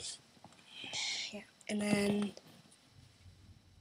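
A hand rustles against a doll's hair.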